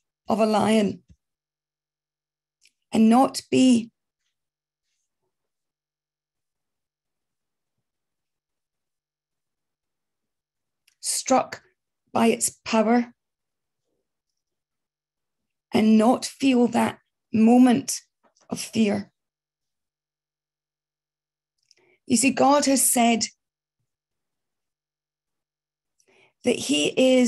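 A middle-aged woman speaks calmly in short bursts with long pauses, heard through an online call.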